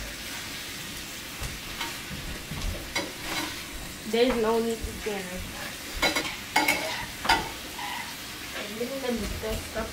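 A spatula scrapes and clinks against a pan.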